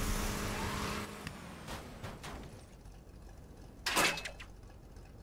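A vehicle crashes and flips over with a loud bang.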